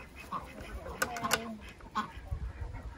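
A wooden hatch latch clicks open.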